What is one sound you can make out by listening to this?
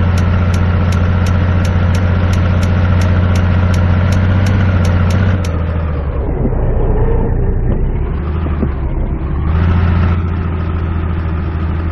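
A truck engine rumbles steadily, dropping and rising again as the truck slows and speeds up.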